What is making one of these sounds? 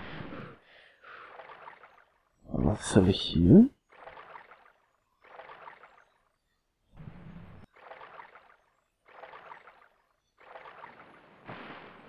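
Water splashes in regular strokes as a swimmer moves along the surface.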